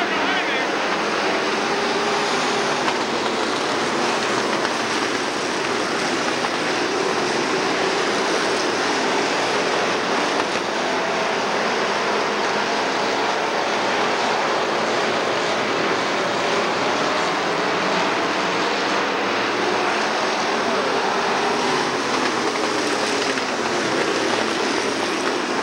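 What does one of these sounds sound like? A crowd of spectators murmurs and cheers nearby.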